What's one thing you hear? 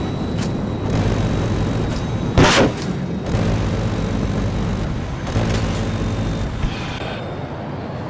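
A cannon fires rapid bursts.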